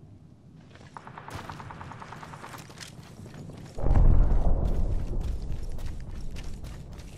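Footsteps thud on gravel.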